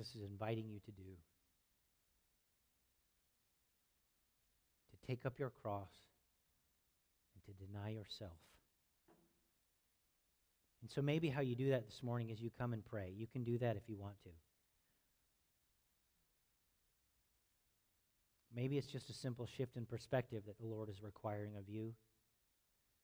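A man speaks calmly in short bursts with pauses.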